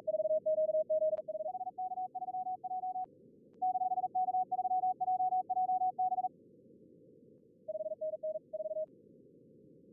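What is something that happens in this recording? Morse code beeps in short, quick bursts.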